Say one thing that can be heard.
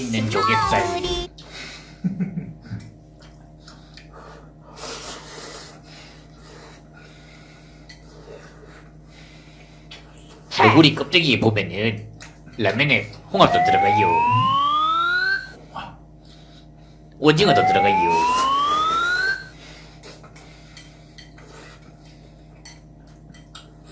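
A young man slurps noodles loudly.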